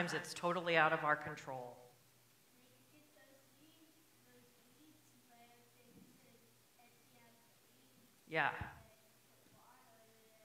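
A woman speaks calmly, heard through a microphone in an echoing room.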